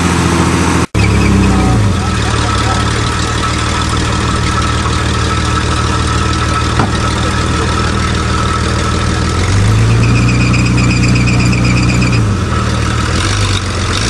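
A pickup truck engine idles with a low rumble.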